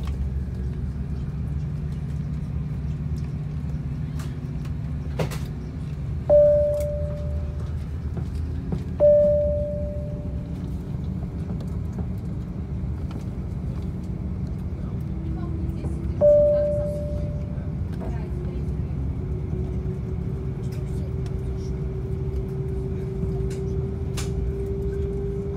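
A jet engine hums with a steady, low drone inside an aircraft cabin.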